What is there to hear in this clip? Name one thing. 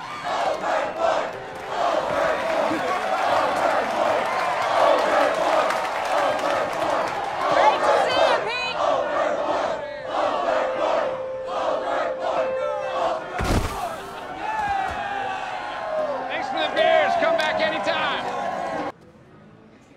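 A crowd cheers and shouts loudly in an echoing room.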